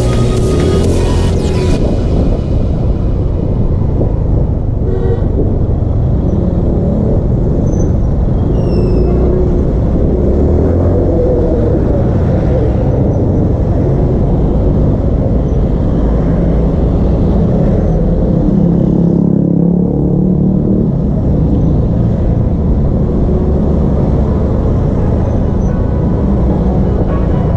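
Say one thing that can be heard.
Wind buffets loudly past the vehicle.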